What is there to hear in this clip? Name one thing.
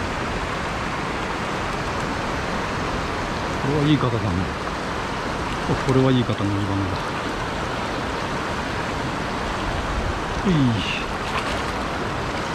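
A shallow river rushes and babbles over stones.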